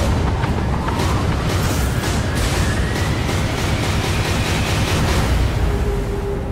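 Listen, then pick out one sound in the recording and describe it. Heavy waves crash and spray.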